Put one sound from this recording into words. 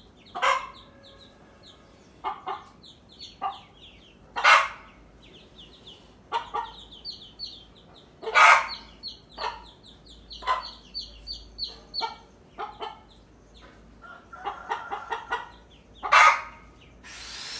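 Chicks peep in high, rapid chirps.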